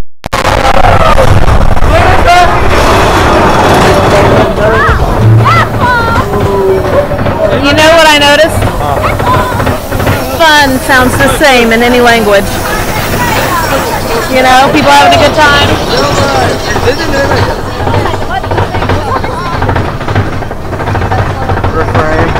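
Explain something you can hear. Young riders scream and shout with excitement close by.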